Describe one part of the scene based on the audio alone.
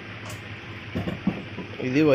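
A metal tool part knocks against a workbench.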